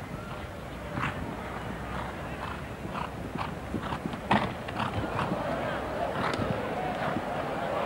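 A horse's hooves thud on turf at a canter.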